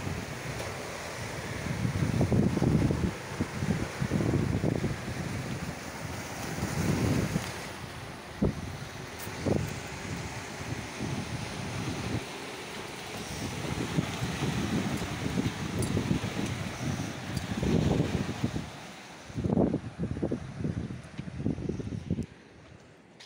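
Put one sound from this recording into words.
Waves wash and break over rocks close by.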